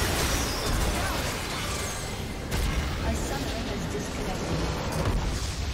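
Magical blasts crackle and whoosh in a fast, noisy battle.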